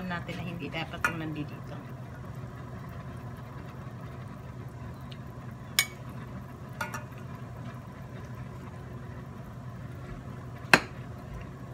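A metal spoon clinks against the side of a pot.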